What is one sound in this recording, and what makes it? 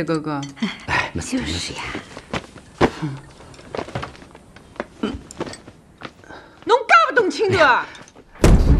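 A young woman speaks calmly at close range.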